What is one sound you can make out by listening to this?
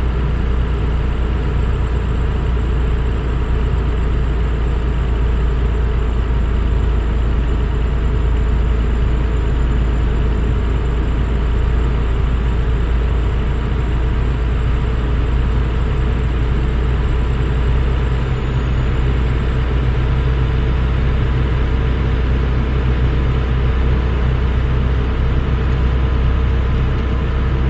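Tyres roll on a highway with a steady road rumble.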